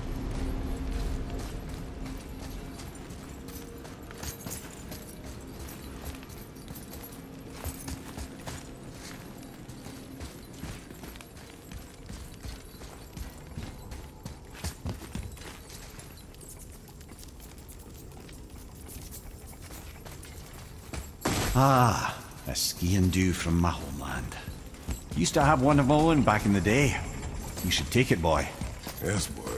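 Heavy footsteps crunch on gravel and stone.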